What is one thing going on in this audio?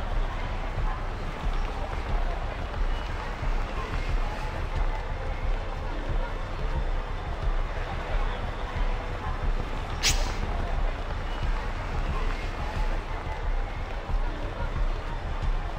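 A city crowd murmurs and shuffles past outdoors.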